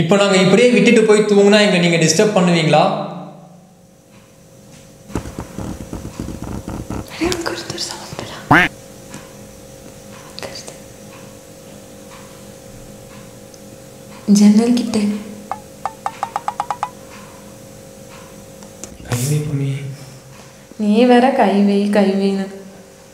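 A young woman speaks softly and nervously close by.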